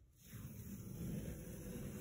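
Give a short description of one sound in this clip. Masking tape peels off a wall with a soft tearing sound.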